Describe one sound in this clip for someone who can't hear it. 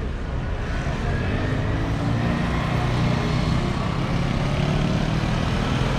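A motor scooter engine hums and revs as it passes.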